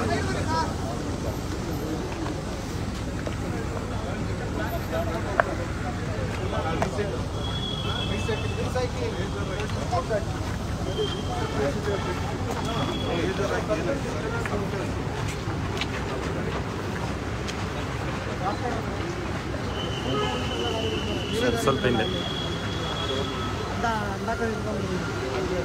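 Several men talk at once in a crowd outdoors.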